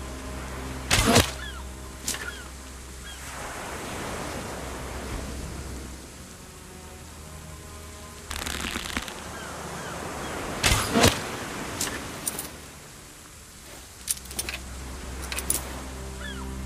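A bow string snaps sharply as arrows are shot.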